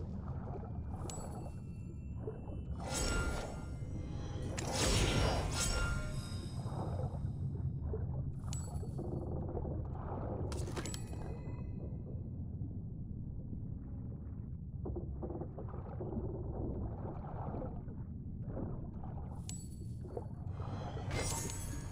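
Short bright chimes ring out now and then.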